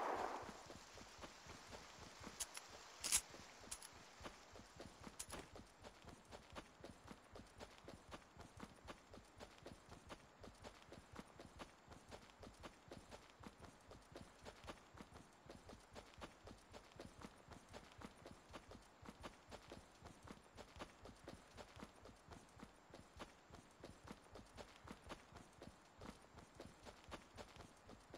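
A game character's footsteps run quickly over grass and dirt.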